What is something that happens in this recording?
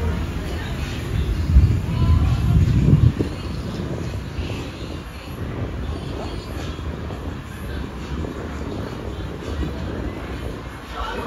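Wind rumbles against the microphone outdoors.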